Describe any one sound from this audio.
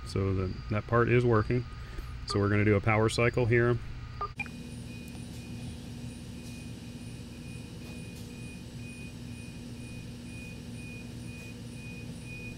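Phone keypad buttons click as they are pressed.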